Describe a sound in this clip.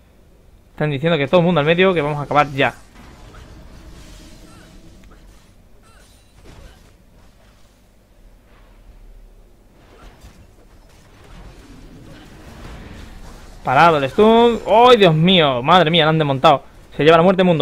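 Magic blasts and weapon hits crackle and thud during a game battle.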